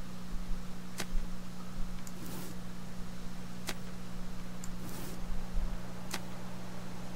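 Soft clicks sound as items are moved around.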